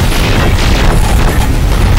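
An energy beam blasts with a loud roaring whoosh.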